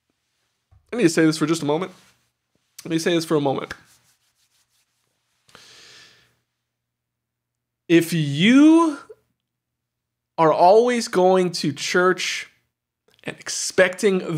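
A young man talks with animation close to a microphone, in short bursts with pauses.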